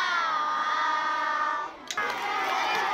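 A choir of children sings together.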